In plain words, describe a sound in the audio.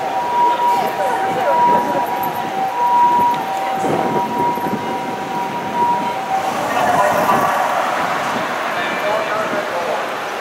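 Traffic rumbles past on a city street.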